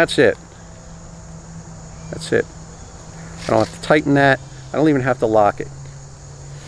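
A middle-aged man speaks calmly and close by, outdoors.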